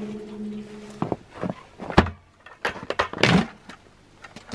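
A plastic bucket clunks and rattles.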